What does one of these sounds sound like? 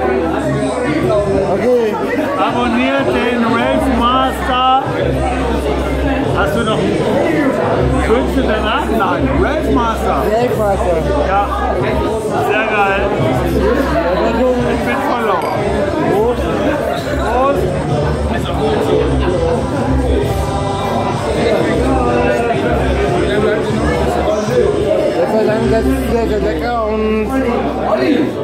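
A second man talks and laughs close by.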